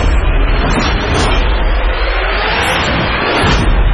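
A motorcycle engine roars past at speed.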